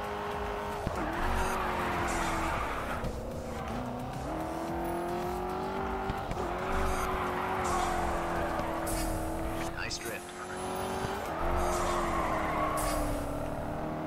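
Tyres screech loudly as a car drifts through bends.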